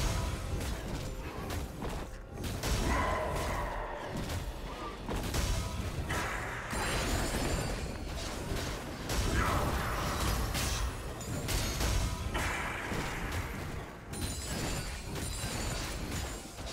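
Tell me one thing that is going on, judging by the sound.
Spell effects and attack hits crackle and burst in a video game fight.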